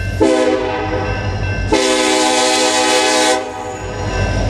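A locomotive horn blasts loudly nearby.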